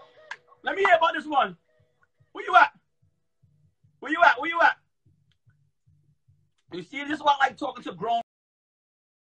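A young man talks with animation into a phone microphone.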